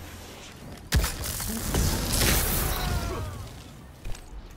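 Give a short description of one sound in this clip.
Guns fire in loud bursts with echoing blasts.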